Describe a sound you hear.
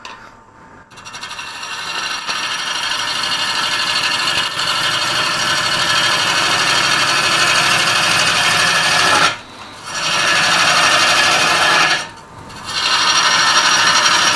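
A chisel scrapes and shaves spinning wood with a loud hiss.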